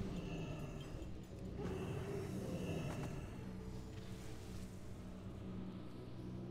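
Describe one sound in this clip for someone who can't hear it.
Fantasy spell effects whoosh and chime during a battle.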